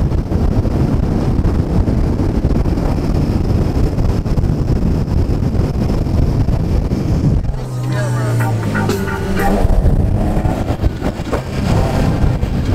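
Tyres roar steadily on the road inside a fast-moving car.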